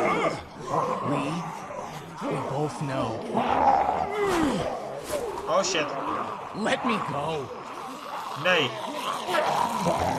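A young man speaks weakly and pleads.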